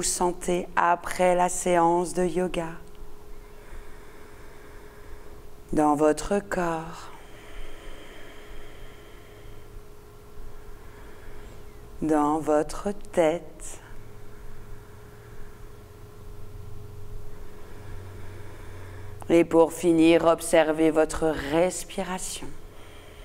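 A woman speaks calmly and softly into a close microphone, with long pauses.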